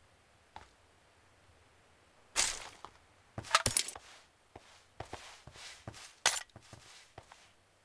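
Short clicks and rustles of gear being picked up and equipped sound from a video game.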